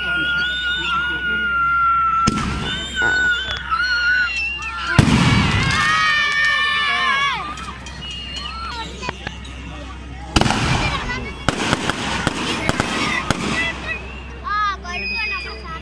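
A firework whistles shrilly as it shoots up.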